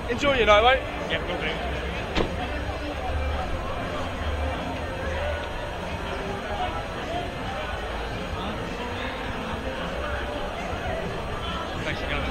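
A crowd talks and shouts.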